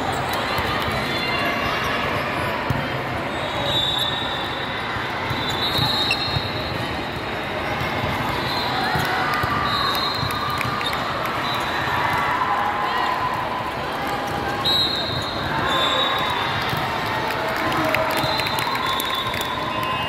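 A volleyball is hit with sharp smacks.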